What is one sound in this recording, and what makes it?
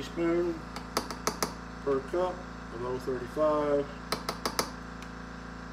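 Small metal parts click and clink together.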